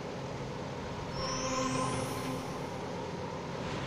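A bright magical chime rings out with a rising shimmer.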